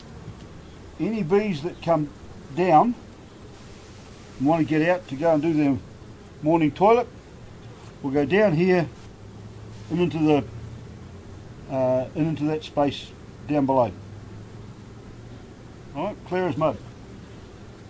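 A man explains calmly, close by.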